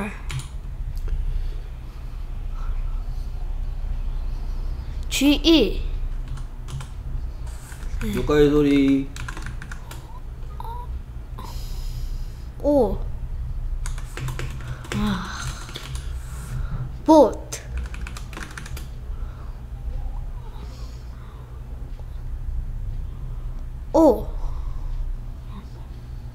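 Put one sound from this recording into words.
Keys click on a keyboard.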